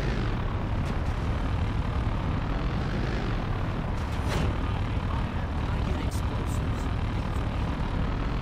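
A heavy vehicle engine rumbles steadily as it drives over dirt.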